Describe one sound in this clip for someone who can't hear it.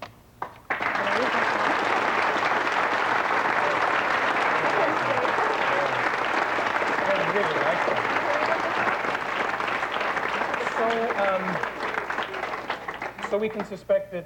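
A large audience cheers and applauds loudly.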